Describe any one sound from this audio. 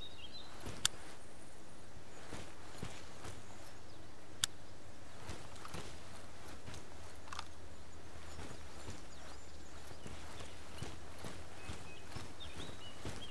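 Footsteps crunch over dry leaves and forest floor.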